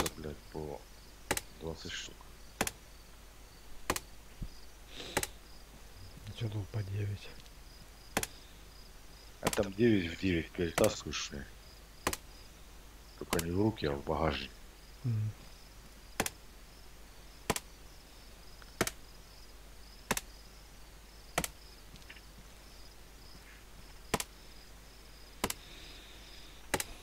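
Gear rustles and clinks as a soldier rummages through a woodpile.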